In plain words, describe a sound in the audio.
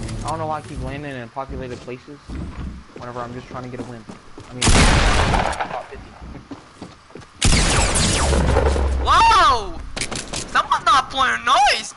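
Footsteps clatter on wooden planks.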